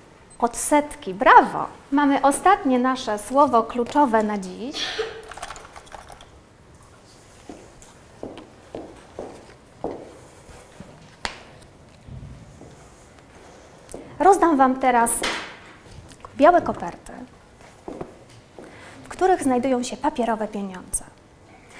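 A woman speaks calmly and with animation.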